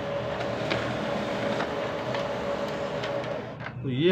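A sheet of paper slides out of a printer.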